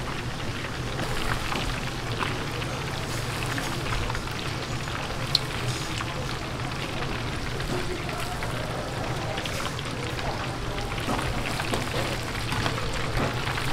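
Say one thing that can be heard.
A metal basket clinks against a fryer.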